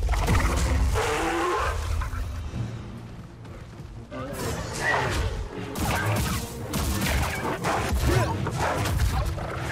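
Lightsaber blades hum and clash.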